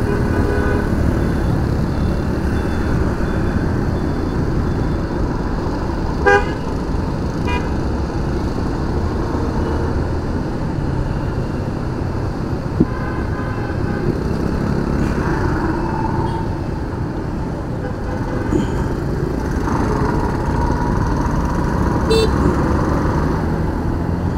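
Wind rushes loudly past a riding scooter.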